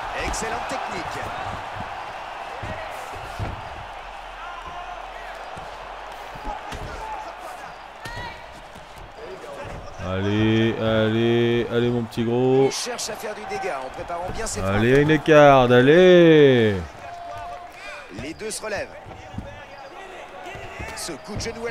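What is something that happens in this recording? Punches thud dully against a body.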